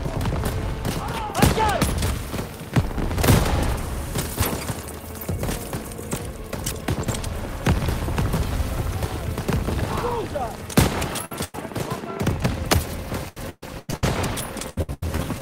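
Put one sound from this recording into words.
Gunshots crack and echo repeatedly.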